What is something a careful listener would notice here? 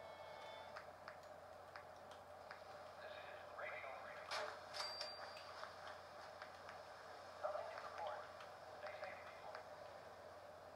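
Game menu sounds click and chime as options are selected.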